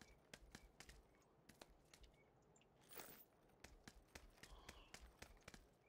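Footsteps thud quickly on a wooden floor indoors.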